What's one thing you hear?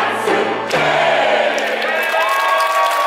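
A large choir holds a final sung chord in an echoing hall.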